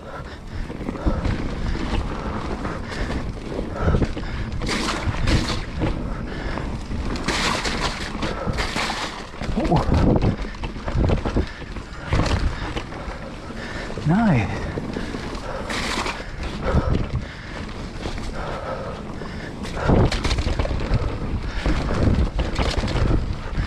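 A bicycle frame rattles and clunks over bumps.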